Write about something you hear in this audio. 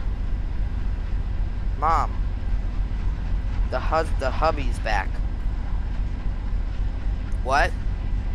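A diesel locomotive idles with a low, steady rumble.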